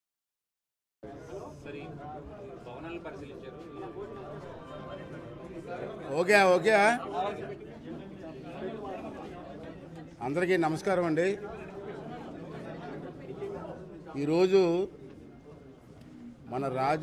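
A middle-aged man speaks loudly and with animation into microphones.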